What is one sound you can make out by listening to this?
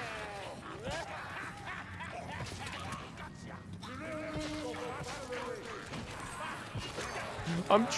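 A heavy hammer thuds into creatures.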